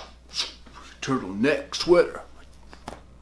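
A young man speaks calmly close to the microphone.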